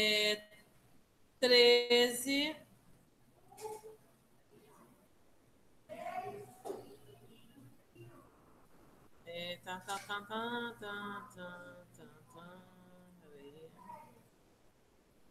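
A woman speaks calmly through an online call, her voice slightly muffled.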